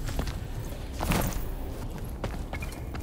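A weapon swings with a sharp whoosh.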